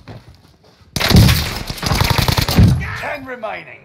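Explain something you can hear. Rapid gunfire bursts loudly.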